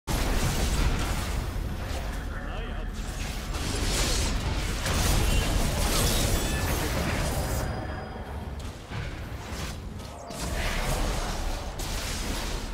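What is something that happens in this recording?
Fantasy game spells blast and crackle during a fight.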